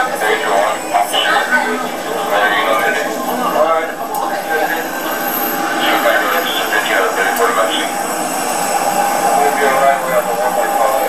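Several men talk over one another, heard through a television speaker.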